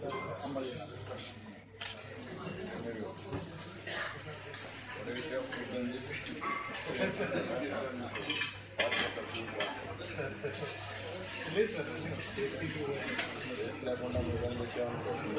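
Several men talk and murmur nearby.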